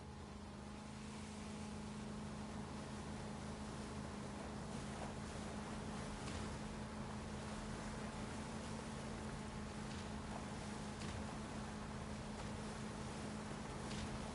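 Water splashes and rushes against a speeding boat's hull.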